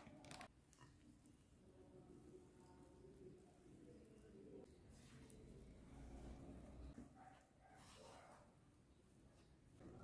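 Hands knead and squish soft dough in a bowl.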